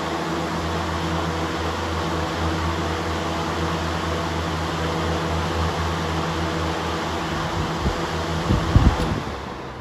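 Two electric fans whir loudly and steadily.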